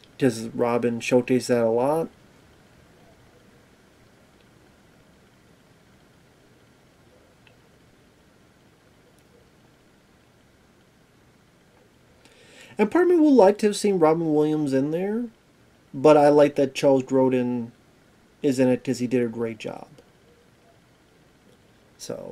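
A man talks calmly and close to a microphone, with pauses.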